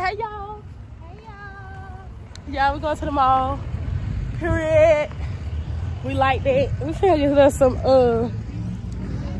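A young man talks up close in a lively, sing-song voice.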